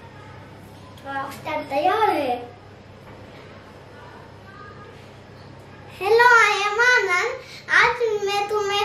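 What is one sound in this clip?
A young boy speaks and sings playfully close by.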